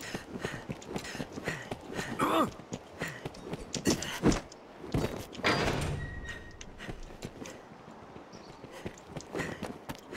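Footsteps tap on stone steps.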